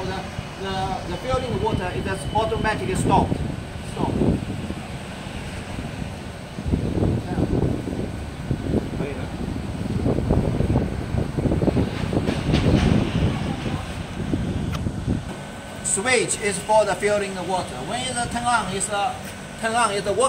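A middle-aged man speaks close by, calmly explaining.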